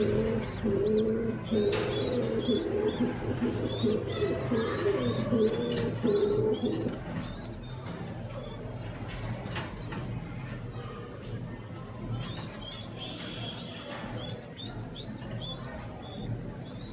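Pigeon chicks squeak with high, thin chirps.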